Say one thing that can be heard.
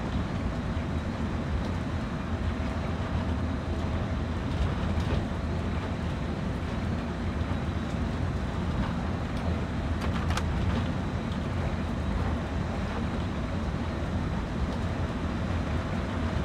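A locomotive engine rumbles steadily from inside the cab.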